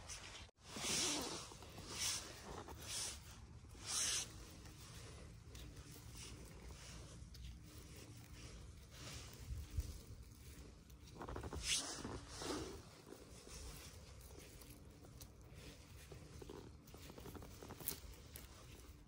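Dry pine needles and leaves rustle under gloved hands.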